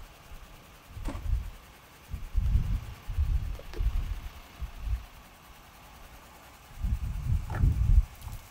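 Plastic tubs bump and thud as a man handles them.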